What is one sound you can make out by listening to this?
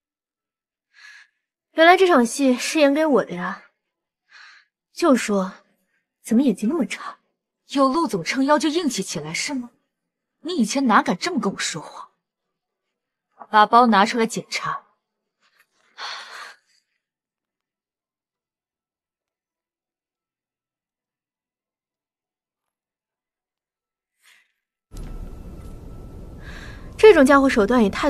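A young woman speaks close by, calmly.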